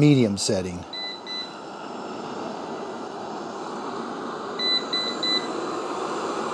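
A robot vacuum cleaner gives a few short high beeps.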